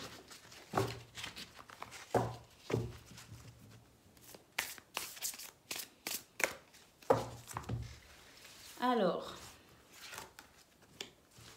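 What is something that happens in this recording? Cards shuffle and slap together in hands.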